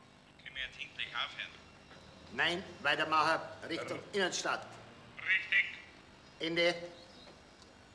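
A middle-aged man talks on the phone in a calm voice.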